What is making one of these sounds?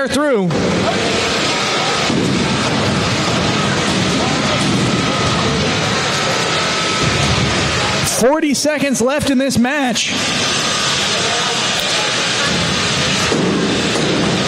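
Small robots clash with metallic knocks.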